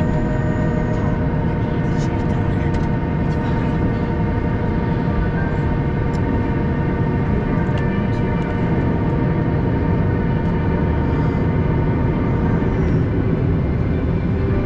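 Jet engines hum and whine steadily.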